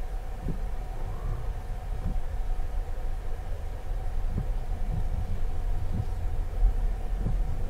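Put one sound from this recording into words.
Tyres crunch over packed snow.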